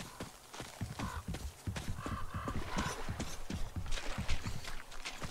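Crows caw overhead.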